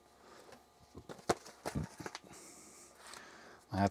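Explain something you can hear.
A plastic case clicks open in a man's hands.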